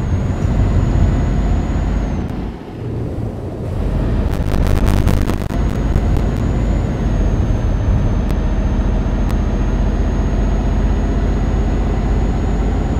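A truck engine rumbles steadily at low pitch.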